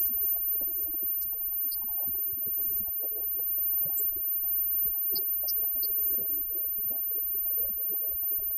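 A bass guitar plays a deep line.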